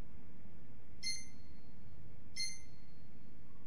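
A short, bright menu chime sounds twice.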